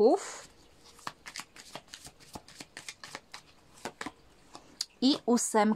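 Playing cards riffle and tap softly as they are shuffled and laid down.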